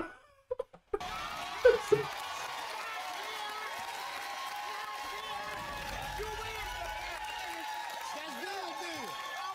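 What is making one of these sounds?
A studio audience cheers and applauds loudly.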